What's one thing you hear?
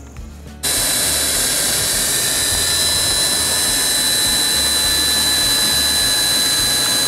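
A cordless drill whines as it drills.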